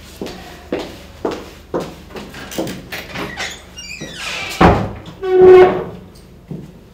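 A door creaks open and shuts with a knock.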